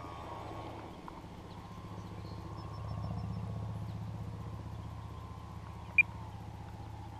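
A small drone hums and whines steadily overhead.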